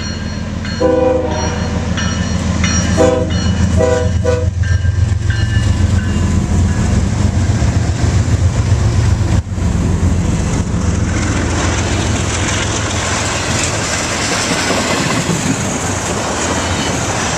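Train wheels clatter rhythmically over the rails.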